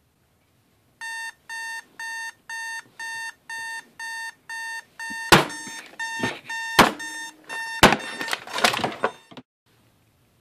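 An alarm clock beeps in quick, even bursts.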